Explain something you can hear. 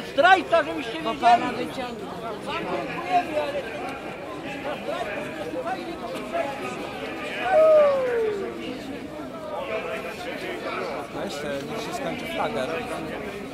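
A large outdoor crowd murmurs and chatters close by.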